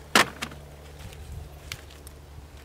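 A man pulls plants out of the soil with a rustle and a tearing of roots.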